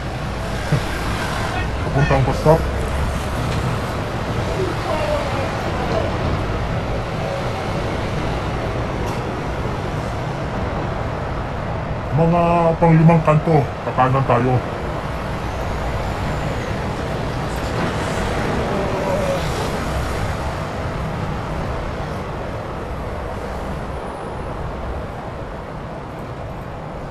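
Road traffic passes on a city street.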